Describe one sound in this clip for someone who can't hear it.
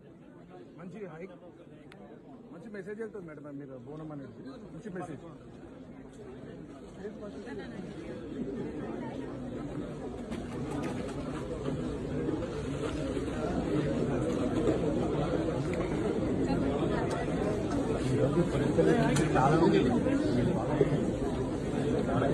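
A crowd of people chatters nearby, growing louder.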